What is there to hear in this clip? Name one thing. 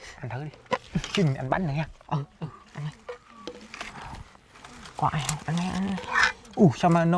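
A spoon clinks and scrapes against a metal pot.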